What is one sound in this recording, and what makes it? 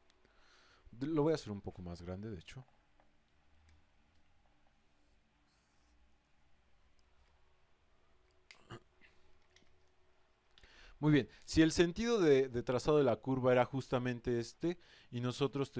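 A man speaks calmly into a close microphone, explaining.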